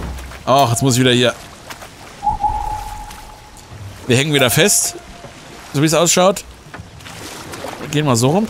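Oars splash softly in water as a boat glides along.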